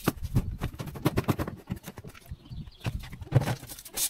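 A broom scrapes across pavement.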